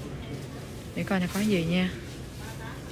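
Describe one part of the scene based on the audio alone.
A woman speaks nearby in a lively voice.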